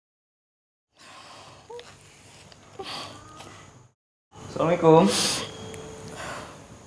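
A middle-aged woman sobs and whimpers close by.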